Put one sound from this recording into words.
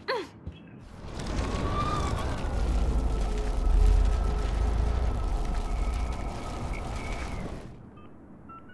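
A warped, rushing rewinding sound swells and then fades away.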